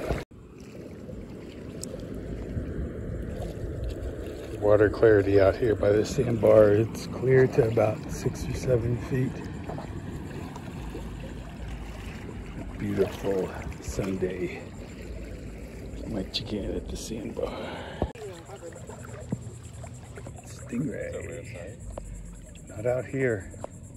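Shallow water laps gently.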